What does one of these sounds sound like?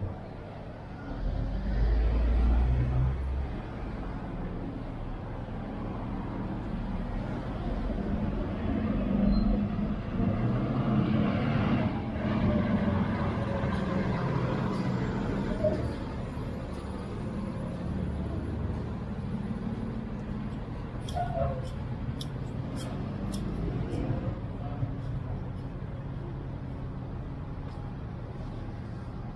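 Street traffic hums steadily outdoors.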